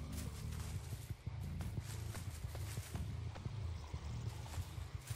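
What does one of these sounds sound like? Heavy footsteps tread over grass and brush at a steady walking pace.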